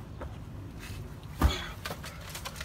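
A person jumps down and lands with a thud on the ground.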